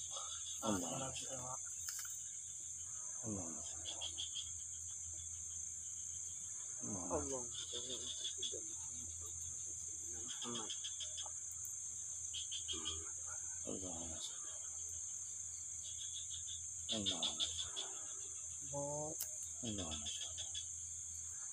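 Hands rustle through dry leaves and soil.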